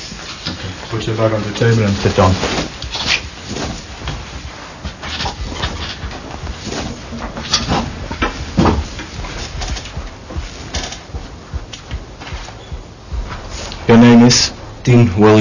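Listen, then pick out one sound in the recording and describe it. A man speaks nearby in short phrases.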